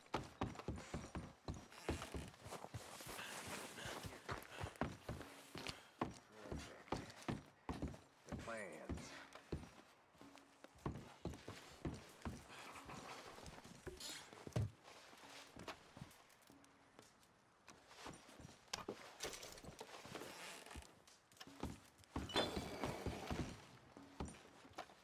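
Boots thud and creak on wooden floorboards.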